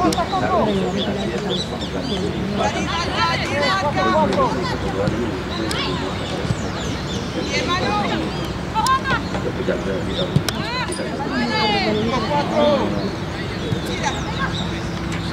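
Young women call out and shout to each other outdoors.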